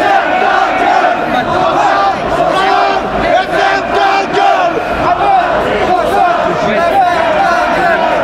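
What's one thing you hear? A crowd of men and women chant and shout loudly outdoors.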